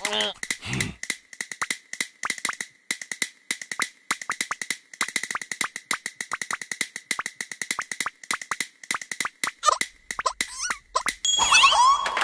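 A small rubbery object bounces quickly on a hard floor with a rapid patter of light taps.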